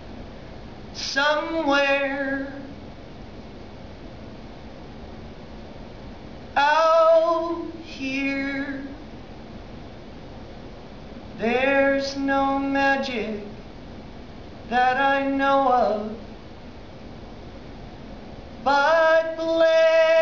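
A man sings short, held phrases into a microphone.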